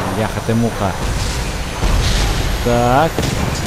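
An explosion booms with a low rumble.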